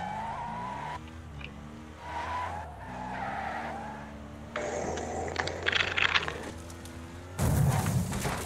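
A car engine roars and revs as it races.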